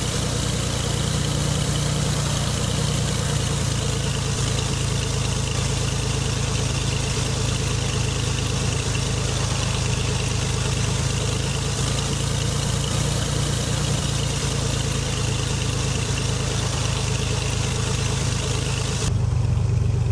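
A small propeller plane's engine hums steadily as it taxis.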